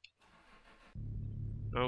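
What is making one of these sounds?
A car engine starts and idles with a low, steady rumble.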